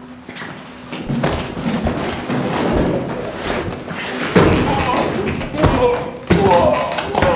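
Bodies and furniture thump and scrape in a struggle.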